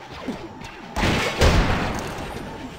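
Toy bricks clatter and scatter apart with a loud crash.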